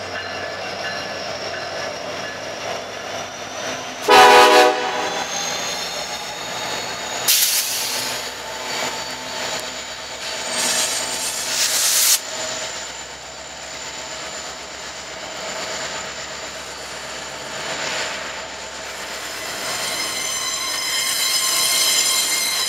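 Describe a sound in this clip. Diesel locomotives rumble loudly as they pass close by.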